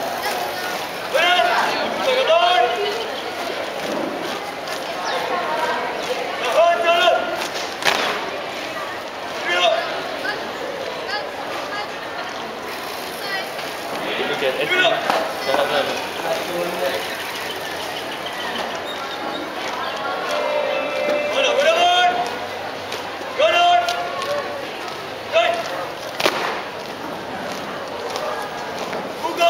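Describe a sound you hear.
A group of people march in step, boots stamping on hard ground.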